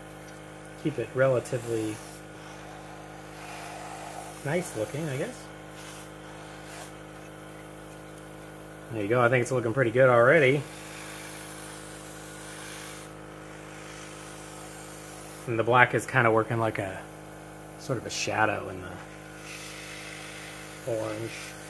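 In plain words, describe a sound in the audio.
An airbrush hisses softly as it sprays paint.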